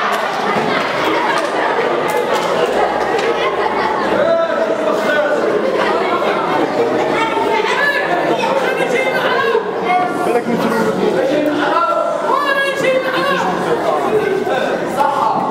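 A bowed string instrument plays a melody.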